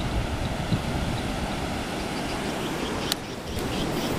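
Waves rush and churn against a shore.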